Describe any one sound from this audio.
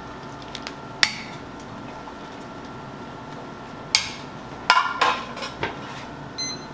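A metal ladle clinks against the side of a metal pot.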